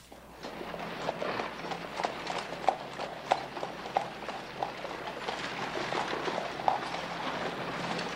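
Footsteps crunch on a dirt street.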